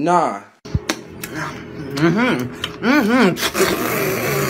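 A young man makes loud, exaggerated wailing noises close by.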